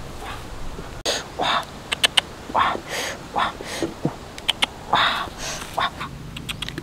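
Embers crackle and pop softly.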